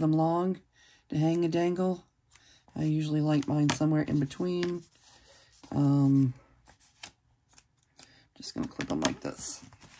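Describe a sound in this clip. Small scissors snip through thread.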